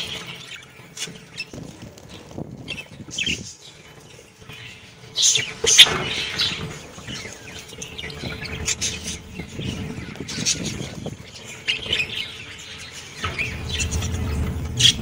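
Budgerigars chirp and chatter nearby.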